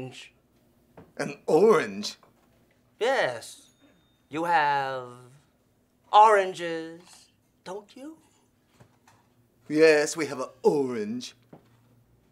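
A younger man speaks with strained disgust, close by.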